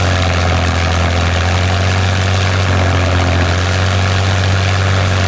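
A propeller plane's piston engine drones loudly and steadily close by.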